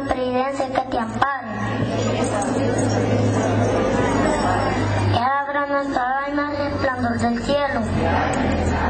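A young boy recites into a microphone, heard through a loudspeaker outdoors.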